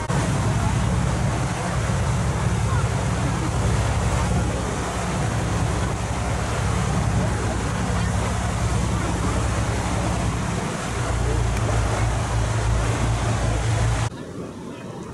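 Wind blows hard across the microphone.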